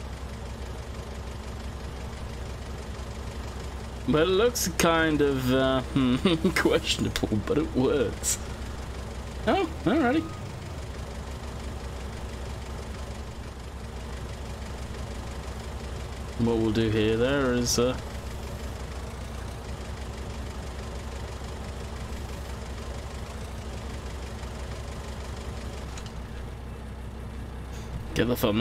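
A diesel engine hums steadily.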